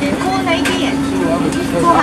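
A young woman talks brightly across a counter.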